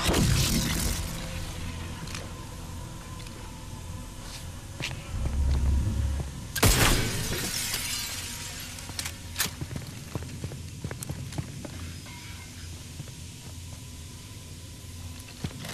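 A low electric hum drones steadily.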